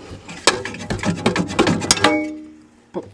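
Metal parts clank and rattle as they are handled.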